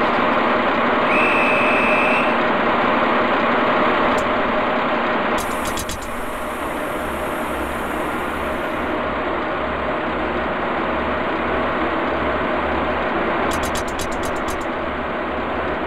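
An electric train's motor hums steadily inside the cab.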